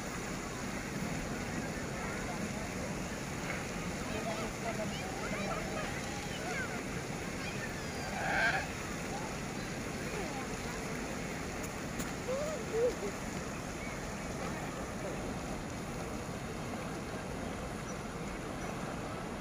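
Children and adults chatter faintly in the distance outdoors.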